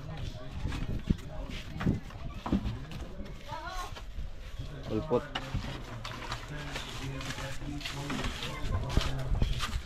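A plastic crate clatters as it is set down.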